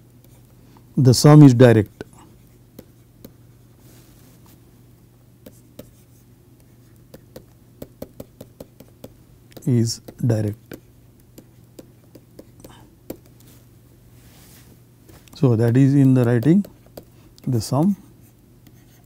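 A man speaks calmly and slowly into a close microphone, in short phrases with long pauses.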